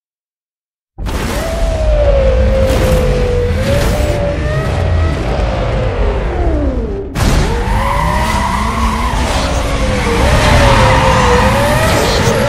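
Race car engines rev loudly, rising and falling in pitch.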